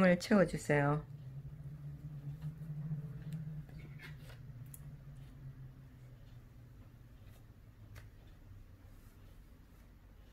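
Soft stuffing rustles quietly as fingers push it in.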